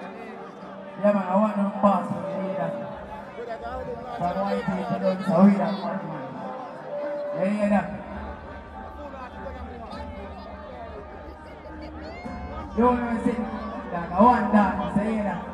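A young man raps loudly into a microphone over loudspeakers.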